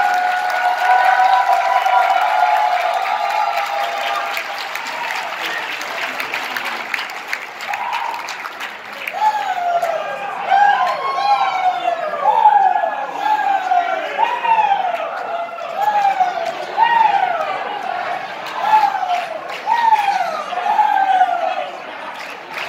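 A large crowd murmurs and chatters in a big echoing hall.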